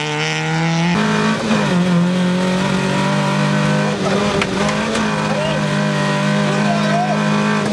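An engine drones steadily inside a car as it drives.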